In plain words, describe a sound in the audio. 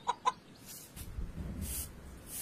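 A broom sweeps over a rug.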